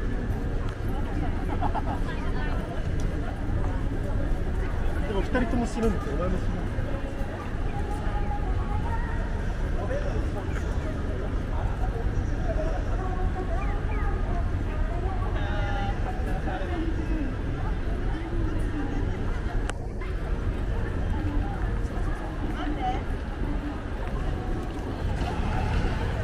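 A crowd of people chatter in a busy street outdoors.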